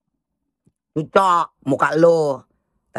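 A woman speaks loudly and with animation close to the microphone.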